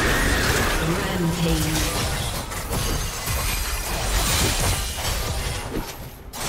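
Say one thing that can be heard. Game spell effects crackle and boom in a fast-paced battle.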